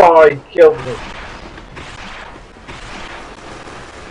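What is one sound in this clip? A flamethrower roars with a rushing hiss.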